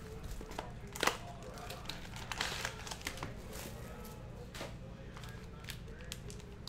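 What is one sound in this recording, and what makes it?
A foil pack crinkles and tears open.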